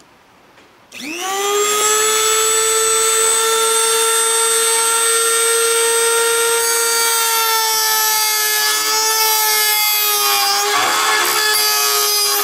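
A small motor spins up and whines steadily at a high pitch.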